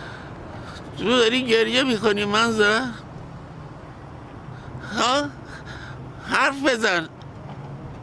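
An elderly man speaks into a phone in an anguished, pleading voice.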